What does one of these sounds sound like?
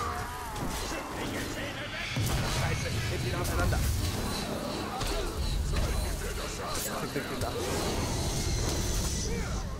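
Blades clash and hit in a close melee fight.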